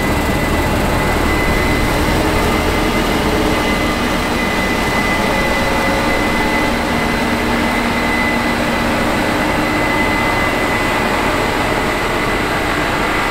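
A combine harvester's header clatters and whirs as it cuts the crop.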